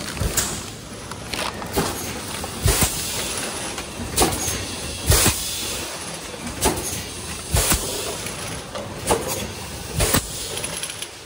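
Machine parts thump and clack at a regular pace.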